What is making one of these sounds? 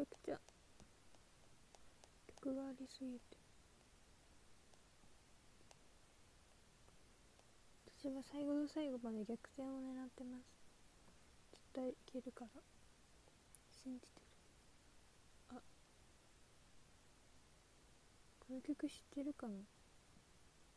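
A young woman speaks softly and close to a microphone, in short bursts.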